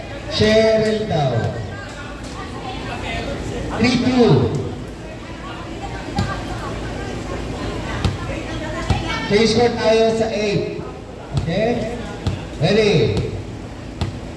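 Young women shout and call out loudly to each other in an echoing hall.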